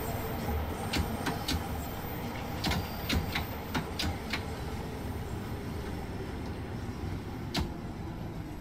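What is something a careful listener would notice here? Train wheels clack sharply over rail joints.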